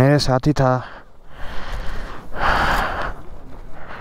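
A gloved hand brushes and rustles close by.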